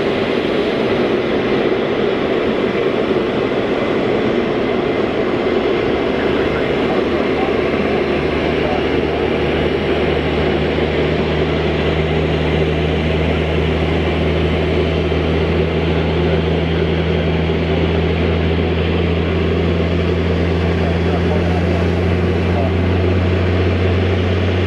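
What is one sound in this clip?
Jet engines roar steadily at close range.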